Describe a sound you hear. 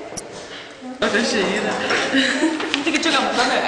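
Two young women talk nearby.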